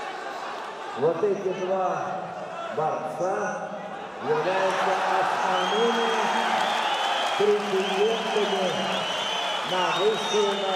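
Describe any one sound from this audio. A crowd chants loudly in rhythm.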